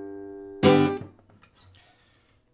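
A classical guitar rings out with a final strummed chord that fades away.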